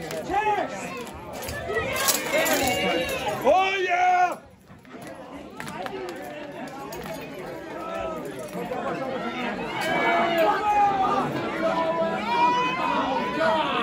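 A crowd of men and women shout and cheer loudly in an echoing room.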